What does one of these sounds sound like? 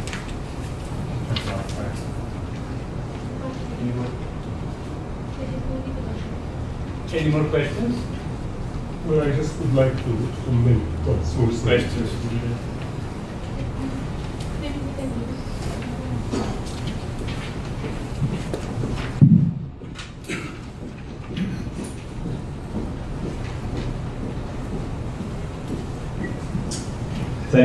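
A second man answers through a handheld microphone.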